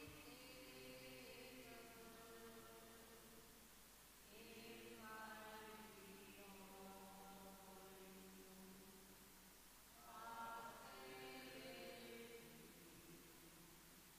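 A man chants in a slow, sung voice through a microphone.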